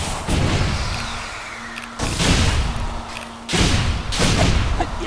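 Loud whooshing attack sounds burst out again and again.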